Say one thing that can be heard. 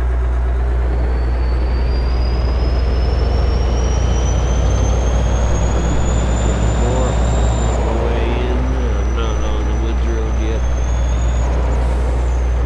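A truck engine whines higher as it speeds up, then eases off.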